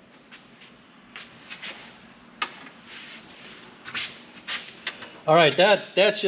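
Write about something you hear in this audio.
A circuit board clicks and rattles against a metal computer case as it is lifted out.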